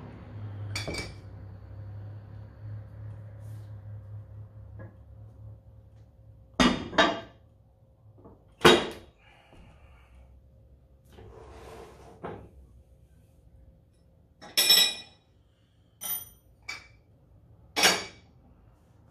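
Heavy metal weight plates clank and clang together as a man stacks them.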